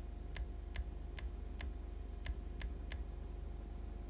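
Short menu clicks tick several times in quick succession.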